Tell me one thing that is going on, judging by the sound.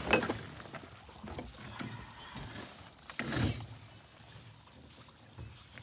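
A wire crab trap rattles as it is handled.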